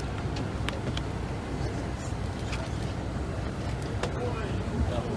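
Footsteps shuffle as people climb onto a bus.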